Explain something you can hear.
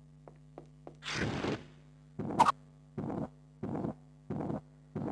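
A flying figure whooshes past in short repeated bursts.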